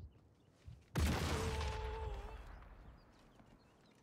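A rifle fires a single loud shot that echoes and fades.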